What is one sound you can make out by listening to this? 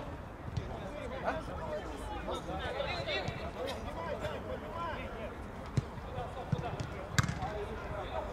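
Several men shout to each other outdoors.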